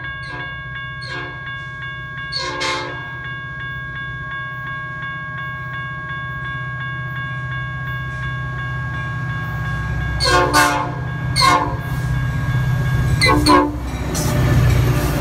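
A diesel commuter locomotive rumbles as it approaches and passes close by.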